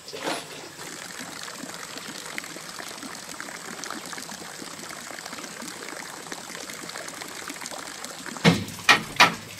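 Water pours from a pipe and splashes into a pond.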